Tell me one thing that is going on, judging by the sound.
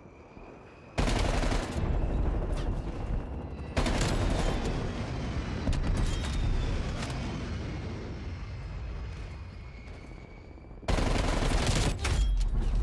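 Rapid gunshots fire close by in loud bursts.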